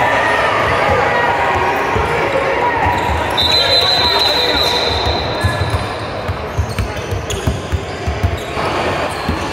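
A basketball bounces repeatedly on a wooden floor in a large echoing gym.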